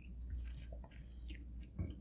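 Pizza is dipped into thick sauce with a soft squelch.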